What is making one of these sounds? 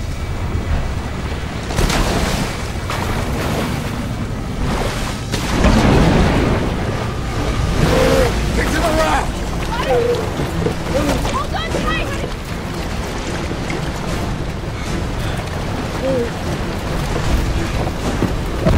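Water splashes and churns heavily.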